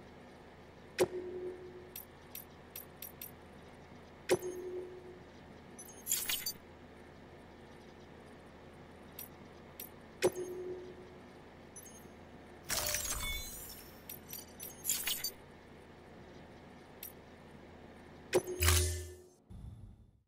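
Soft electronic menu clicks and chimes sound now and then.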